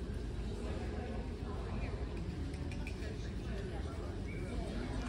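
Faint voices murmur and echo through a large hall.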